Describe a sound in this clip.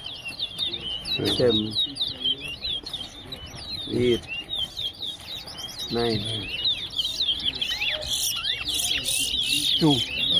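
A man talks briefly nearby outdoors.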